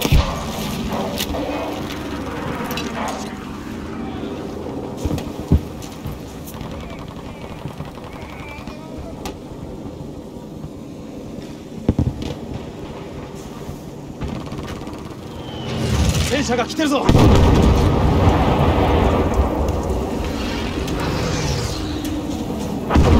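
Explosions rumble in the distance.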